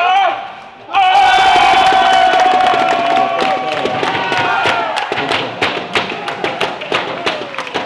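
Young men shout and cheer loudly.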